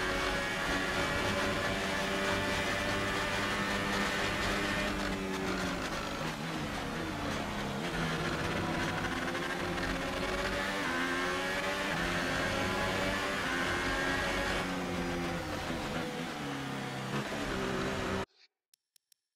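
A racing car engine roars loudly, rising and falling in pitch as it shifts gears.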